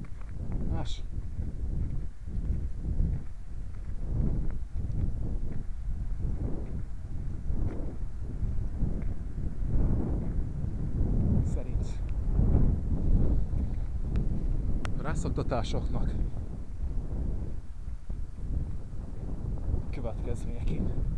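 Wind blows in gusts, rumbling outdoors.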